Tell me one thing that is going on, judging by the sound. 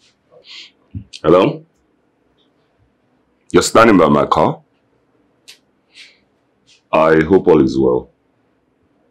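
A man speaks on a phone, close by.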